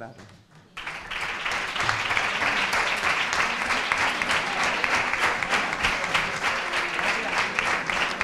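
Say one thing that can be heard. An audience applauds indoors.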